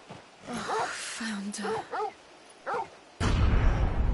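A young woman speaks softly and shakily, close by.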